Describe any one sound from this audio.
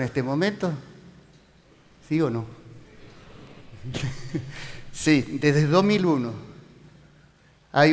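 A middle-aged man speaks calmly through a headset microphone, in short phrases with pauses.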